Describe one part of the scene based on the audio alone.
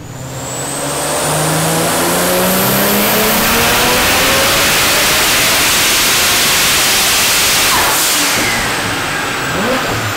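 A powerful car engine revs up to a loud roar, then eases off.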